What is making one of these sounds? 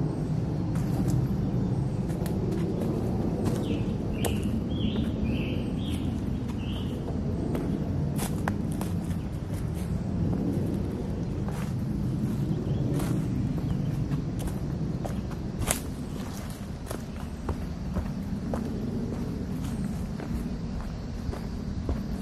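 Footsteps crunch and rustle on dry leaves and twigs.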